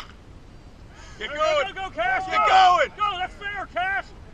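Young men shout and cheer loudly outdoors.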